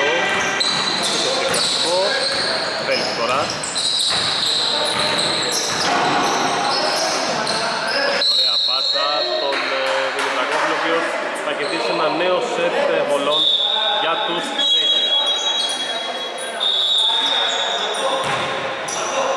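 Sounds echo in a large indoor hall.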